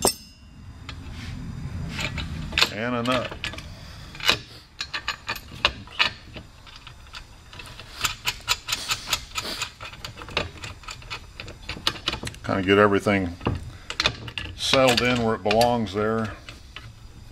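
Small metal parts click and clink as they are fitted by hand.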